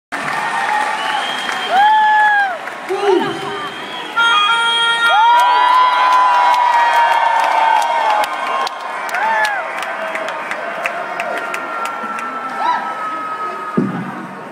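A band plays live music, heard from far back in a large echoing hall.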